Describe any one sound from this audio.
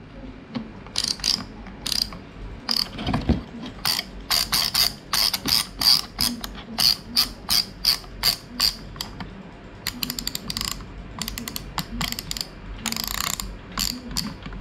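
A plastic dial clicks repeatedly as it is turned.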